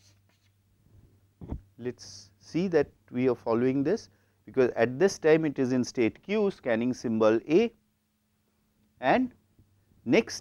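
A middle-aged man speaks calmly, explaining, through a clip-on microphone.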